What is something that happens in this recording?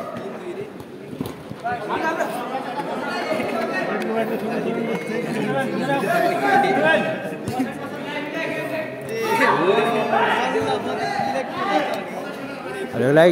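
Young men shout and call out to each other across an echoing indoor pitch.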